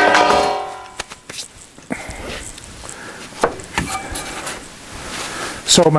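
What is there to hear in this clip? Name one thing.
Objects knock and rattle as a man rummages through gear.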